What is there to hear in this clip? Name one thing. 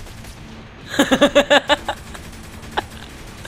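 A pistol fires several rapid shots.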